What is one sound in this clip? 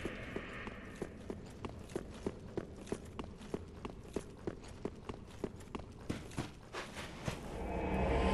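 Heavy armoured footsteps run quickly over stone.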